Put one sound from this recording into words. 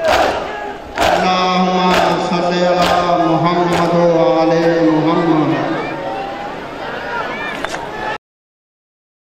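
A man chants a mournful lament loudly.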